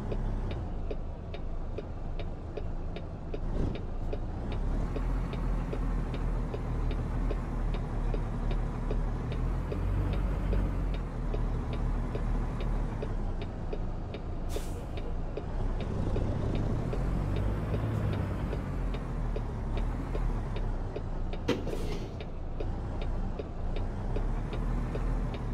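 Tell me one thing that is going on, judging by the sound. A turn signal ticks at an even pace.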